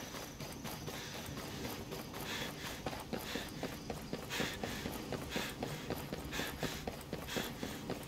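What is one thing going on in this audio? Heavy footsteps tread steadily on hard ground.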